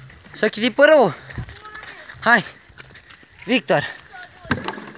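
Young children shout and call out excitedly nearby, outdoors.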